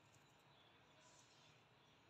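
Leaves rustle softly as a hand brushes them.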